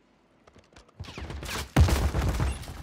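A rifle clatters as it is handled and swapped.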